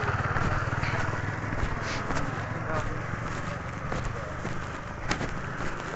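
Footsteps shuffle on a path outdoors.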